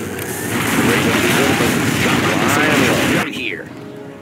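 Gunfire and explosions boom in a battle.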